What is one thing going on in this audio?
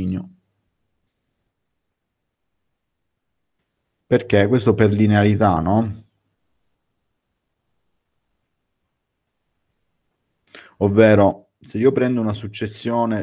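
A man speaks calmly through an online call microphone, pausing between phrases.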